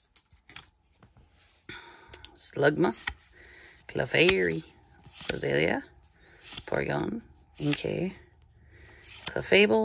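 Playing cards slide and rustle against each other as they are flipped through.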